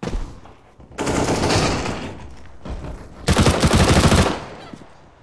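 A submachine gun fires rapid bursts of shots.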